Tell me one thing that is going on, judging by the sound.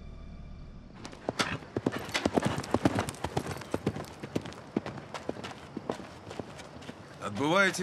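Footsteps crunch on the ground outdoors.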